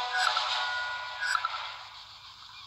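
A short electronic game tune plays.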